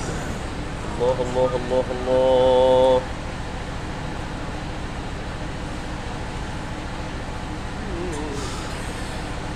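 A man chants melodically into a microphone, heard through loudspeakers.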